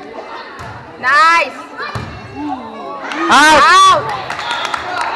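Girls in the crowd cheer and shout loudly.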